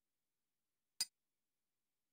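A short menu blip sounds once.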